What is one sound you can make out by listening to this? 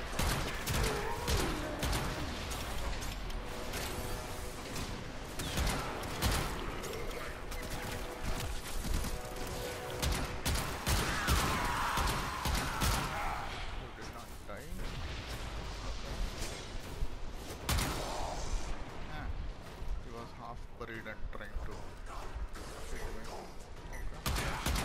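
Gunfire and blasts crack in quick bursts.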